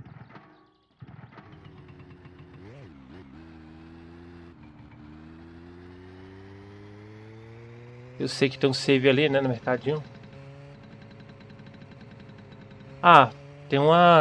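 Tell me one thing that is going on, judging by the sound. A small motorbike engine starts and runs, its pitch rising as it speeds up.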